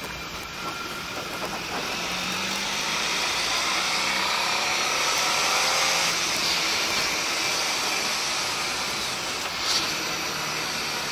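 A motorcycle engine hums and rises in pitch as it speeds up.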